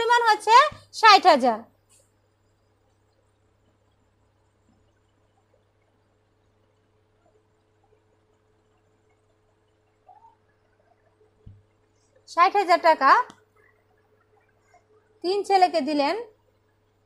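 A woman speaks calmly and clearly up close, in short bursts with pauses.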